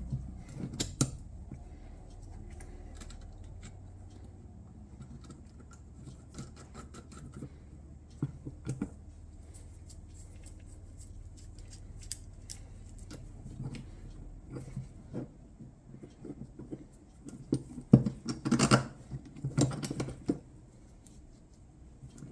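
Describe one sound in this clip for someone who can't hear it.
Metal parts click and clink as gloved hands handle them.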